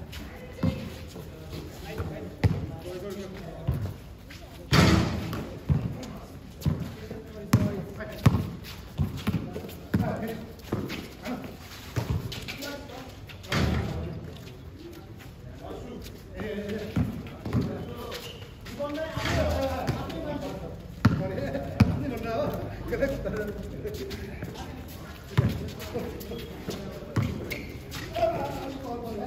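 A basketball bounces on hard ground outdoors.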